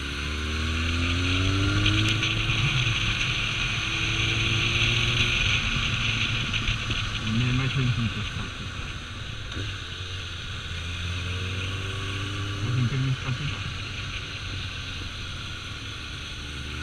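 A motorcycle engine hums and revs up and down close by.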